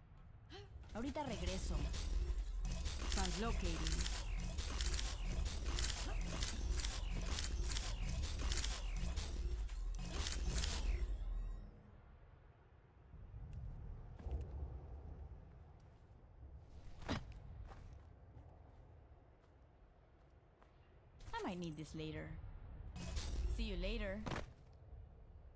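Electronic whooshing effects hum and swirl loudly.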